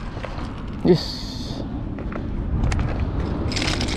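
A fishing reel clicks as it winds in line.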